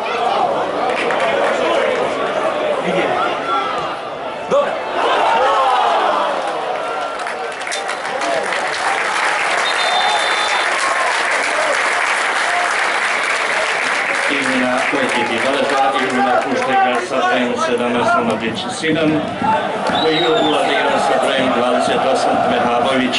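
A stadium crowd roars and cheers throughout.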